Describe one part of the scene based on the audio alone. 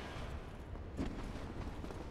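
A sword strikes armour with a sharp clang.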